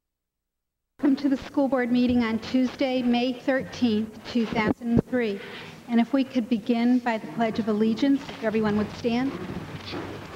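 A woman speaks steadily through a microphone in a large room.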